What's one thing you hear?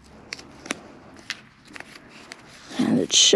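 Stiff cardboard pieces with metal fasteners click and tap against each other.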